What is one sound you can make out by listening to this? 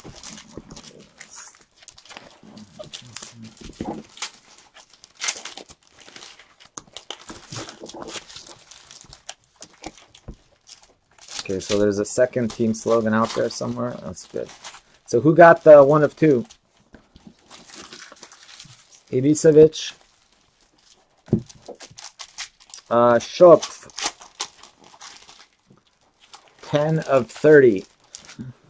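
Trading cards rustle and flick softly between fingers.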